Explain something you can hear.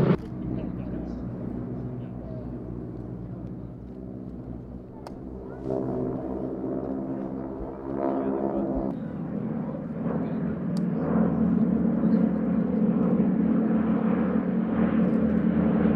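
Propeller plane engines drone overhead, rising and falling as the planes pass.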